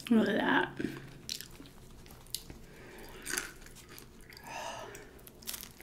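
A woman chews a sub sandwich with crunchy chips close to a microphone.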